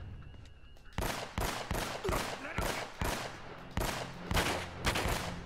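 Guns fire in rapid bursts of shots.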